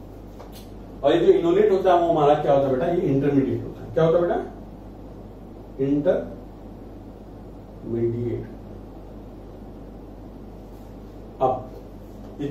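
A young man speaks calmly, lecturing.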